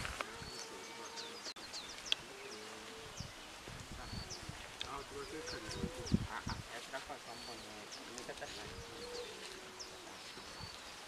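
A man talks calmly at a distance outdoors.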